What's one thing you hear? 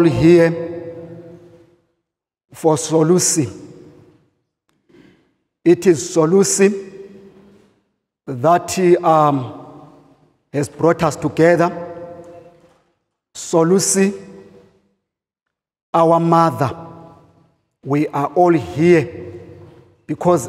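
A man preaches with animation into a microphone, in bursts with pauses, in an echoing hall.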